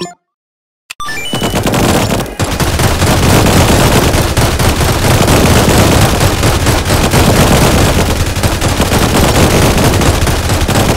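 Guns fire in rapid bursts.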